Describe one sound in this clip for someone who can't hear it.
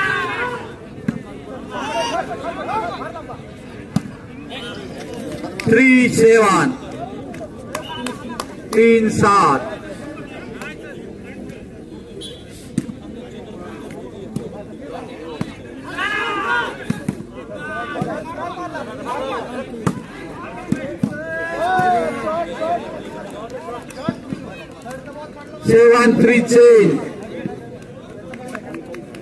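A ball is struck hard with a slap.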